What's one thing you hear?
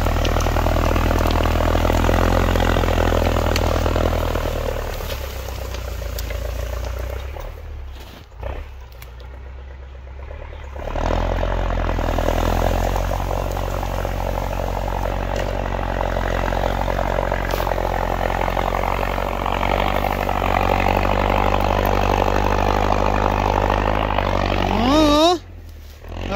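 A tractor's diesel engine rumbles steadily nearby, rising and falling in strength.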